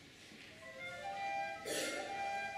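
Recorders play a tune.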